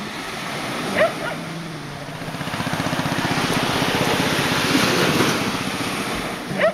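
A dog whines in short high yelps.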